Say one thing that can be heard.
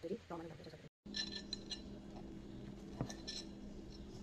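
A knife and fork scrape against a plate.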